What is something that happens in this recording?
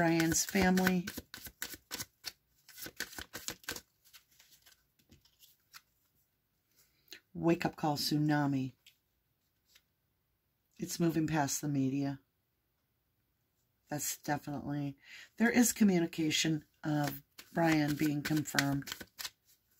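Playing cards shuffle and slap together close by.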